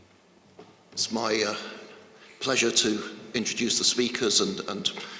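A man speaks calmly into a microphone over an online call.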